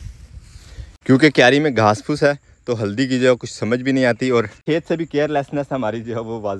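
A man speaks close up, with animation.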